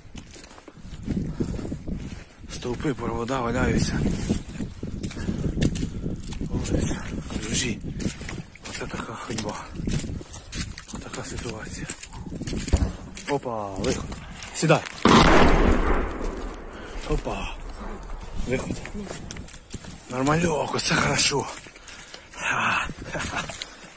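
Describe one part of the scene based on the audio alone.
A young man talks close to a phone microphone as he walks.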